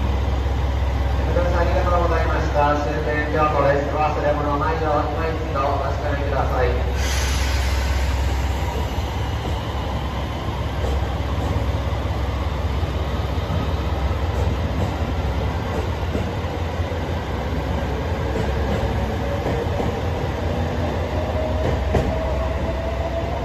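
A train pulls out and rolls past, slowly gathering speed.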